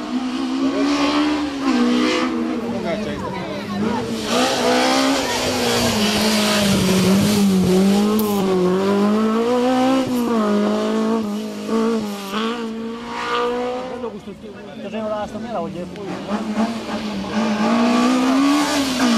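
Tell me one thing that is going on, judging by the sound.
A rally car engine roars close by, revving up and down as it speeds through bends.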